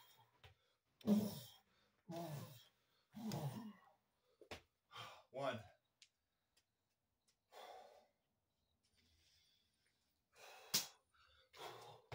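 A man breathes hard and grunts with effort close by.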